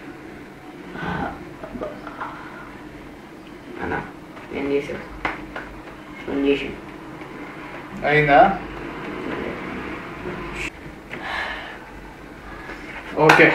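A boy talks in short bursts nearby.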